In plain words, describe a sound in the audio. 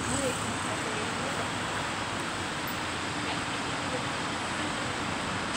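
Steady city street noise with distant traffic hums outdoors.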